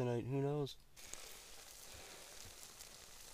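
A campfire crackles softly outdoors.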